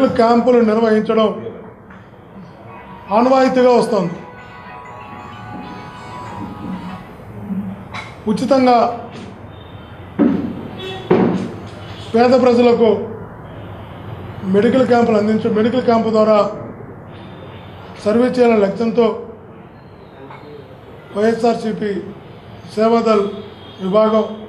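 A middle-aged man speaks with animation into a nearby microphone, in bursts with pauses.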